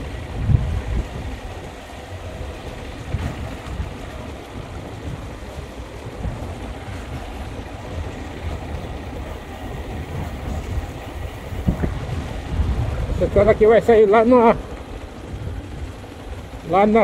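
A motorcycle engine rumbles at low speed.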